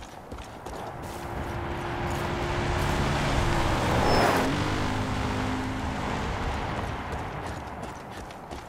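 A quad bike engine roars closer, passes by and fades away.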